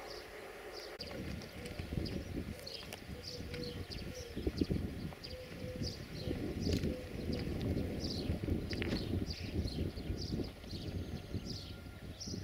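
A train rumbles past on the tracks.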